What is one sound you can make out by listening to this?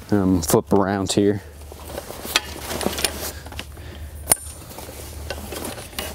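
Canvas fabric rustles as a man folds it.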